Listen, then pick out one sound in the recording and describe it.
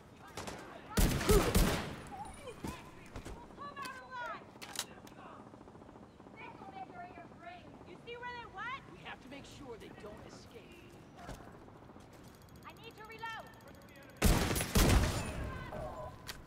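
Gunfire bursts out in loud, rapid volleys.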